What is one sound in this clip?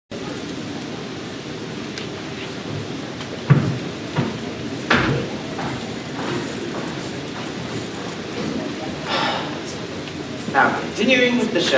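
An audience murmurs and rustles in a large hall.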